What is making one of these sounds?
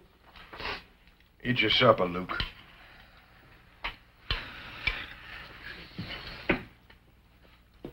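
Spoons and cutlery clink against dishes.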